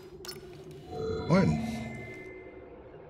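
A holographic display chimes and hums as it switches on.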